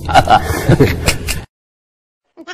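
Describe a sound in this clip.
A man laughs heartily close by.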